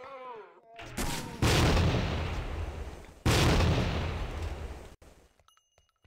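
An automatic rifle fires loud, rapid bursts close by.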